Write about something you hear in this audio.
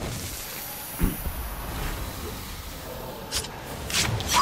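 A blade slashes with a sharp swish.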